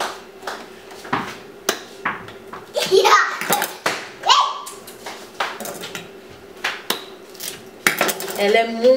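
Utensils clink and tap against a pan.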